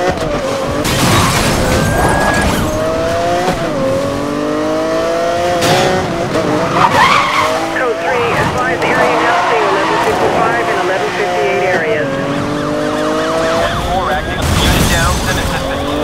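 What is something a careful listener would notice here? A car crashes hard into another vehicle with a loud metallic bang.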